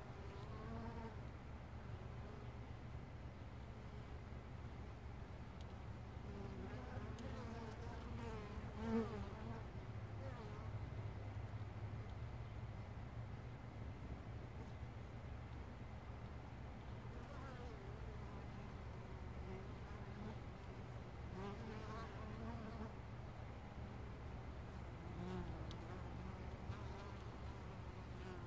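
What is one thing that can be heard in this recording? Bees buzz and hum steadily close by.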